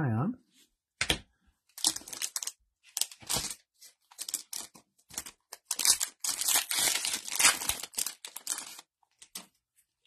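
A foil wrapper crinkles and tears as it is pulled open.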